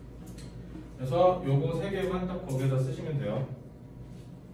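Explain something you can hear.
A young man speaks calmly, as if teaching a class.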